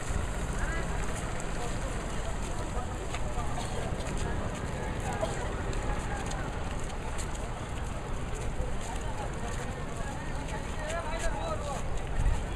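A crowd of women chatter as they walk past outdoors.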